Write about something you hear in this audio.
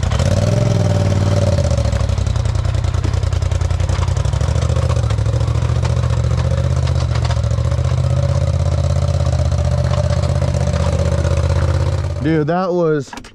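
An off-road vehicle engine rumbles steadily and revs.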